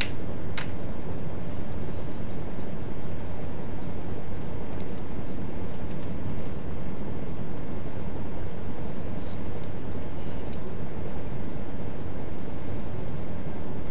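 Ocean waves roll and wash steadily, heard with a deep low rumble.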